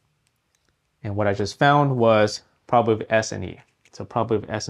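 A man speaks calmly and close to a microphone, explaining.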